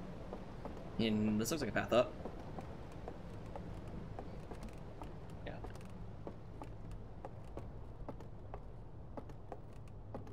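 Footsteps tap steadily up wooden stairs.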